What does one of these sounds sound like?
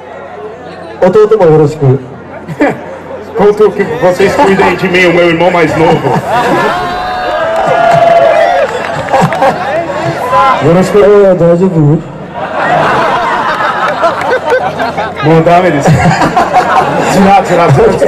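A second man sings into a microphone through loudspeakers.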